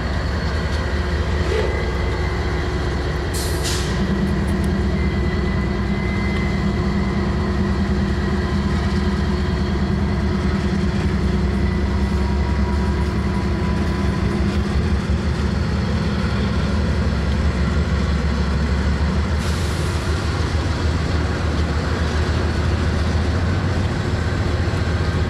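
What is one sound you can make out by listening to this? Freight train wheels roll slowly over the rails.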